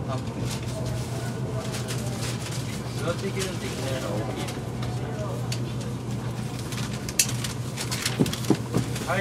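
Train wheels clatter and squeal over the rails.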